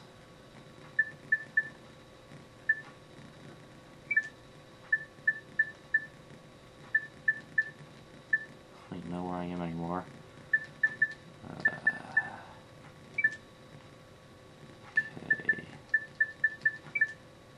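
Short electronic beeps tick as a game menu selection moves.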